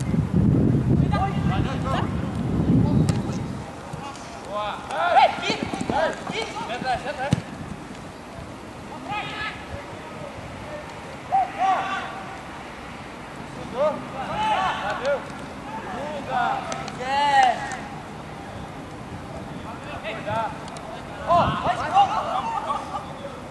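Young men shout and call out to each other across an outdoor pitch.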